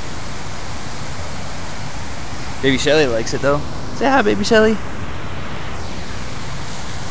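Shallow floodwater laps and ripples softly.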